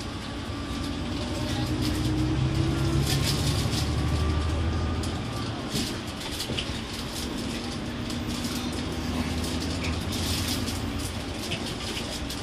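A bus engine hums and rumbles steadily from inside the cabin.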